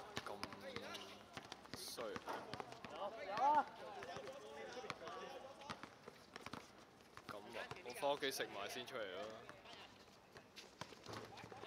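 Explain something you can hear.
Shoes scuff and patter on a hard court.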